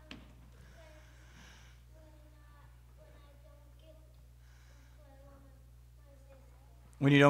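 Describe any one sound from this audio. A child speaks softly in a large hall, heard from far off.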